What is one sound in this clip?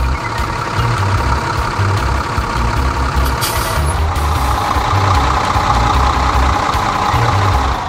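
A tractor engine rumbles as it drives along.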